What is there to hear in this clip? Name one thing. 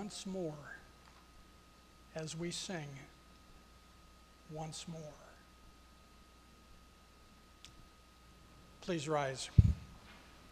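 An elderly man speaks slowly and clearly into a microphone, pausing between phrases.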